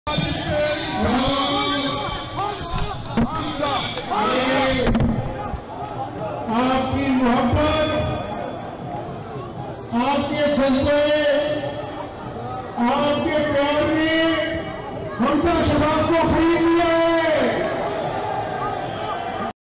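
A man shouts slogans loudly through a microphone and loudspeaker.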